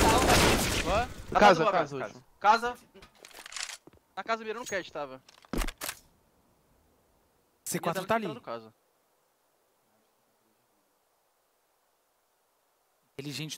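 A man talks with animation through a microphone, in short bursts.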